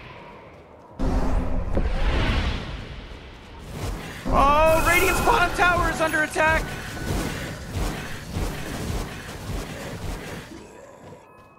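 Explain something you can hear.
Game spell effects burst and crackle during a fight.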